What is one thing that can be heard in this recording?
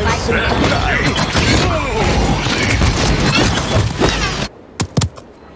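Magical blasts crackle and roar in a busy fight.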